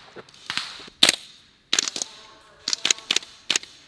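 Rifle shots crack in quick bursts outdoors.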